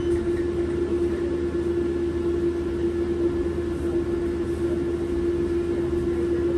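A bus rattles and rumbles as it drives.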